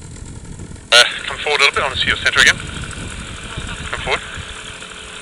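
A man speaks loudly close by, outdoors.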